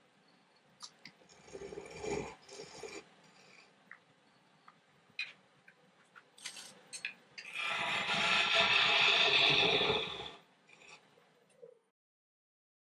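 A gouge scrapes and shaves a spinning block of wood.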